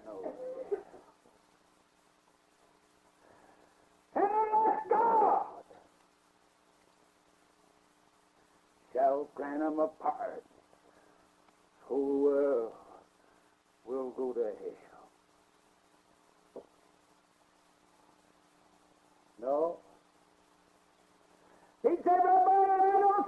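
An elderly man speaks in bursts with long pauses.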